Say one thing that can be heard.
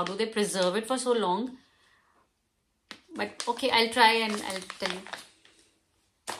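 Plastic packets crinkle in a young woman's hands.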